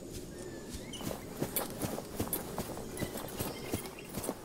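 Footsteps tread along a dirt path.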